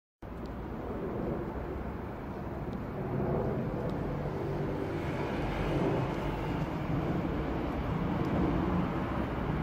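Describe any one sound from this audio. An airplane drones steadily overhead in the distance.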